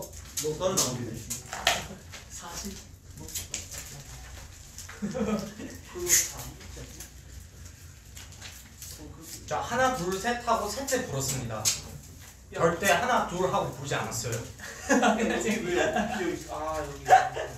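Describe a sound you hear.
Young men talk and laugh together close to a microphone.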